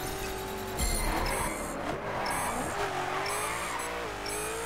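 Tyres screech as a car drifts through a corner.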